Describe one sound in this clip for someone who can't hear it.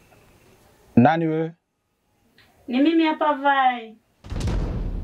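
A woman speaks in a raised, emotional voice close by.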